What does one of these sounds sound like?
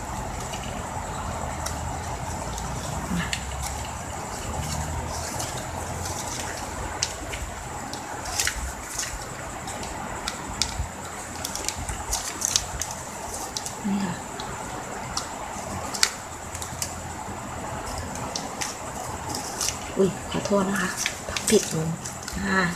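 Plastic ribbon crinkles and rustles as hands fold it.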